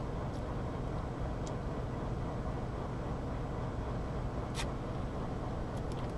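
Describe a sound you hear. A man gulps a drink from a bottle.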